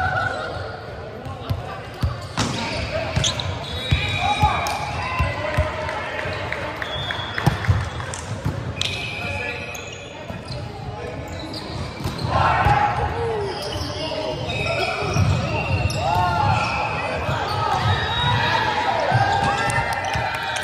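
Shoes squeak on a hard floor.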